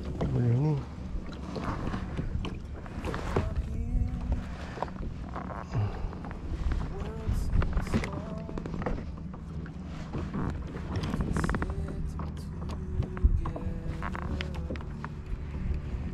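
A fishing reel whirs as its line is wound in.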